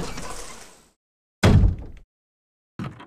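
A heavy wooden door creaks open and thuds shut.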